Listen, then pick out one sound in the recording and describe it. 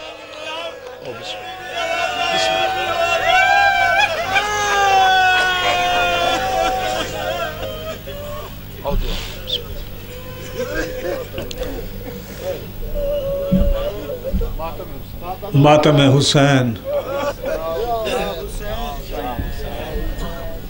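A crowd of men chants together.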